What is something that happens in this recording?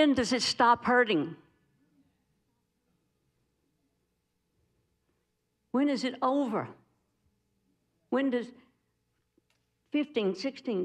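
A middle-aged woman speaks into a microphone in short, animated phrases with pauses between them.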